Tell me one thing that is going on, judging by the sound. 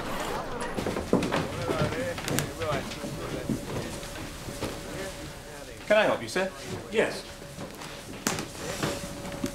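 Men talk with animation nearby.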